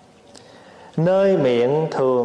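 A man chants in a deep, drawn-out voice close to a microphone.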